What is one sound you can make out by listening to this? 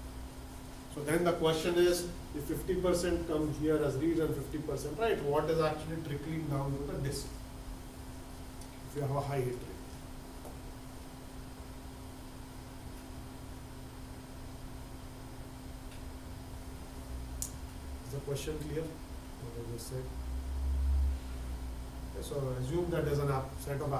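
A man lectures calmly, pausing between phrases.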